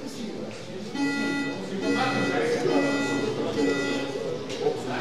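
A bell rings several times in quick succession.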